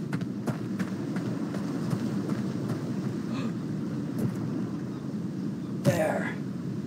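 Footsteps crunch steadily on gravel and rock.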